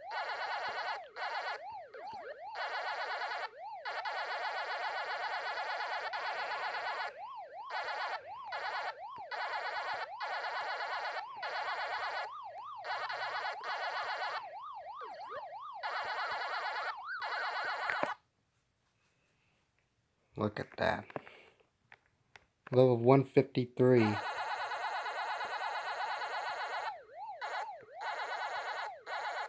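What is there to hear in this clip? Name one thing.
An arcade game's siren drones steadily.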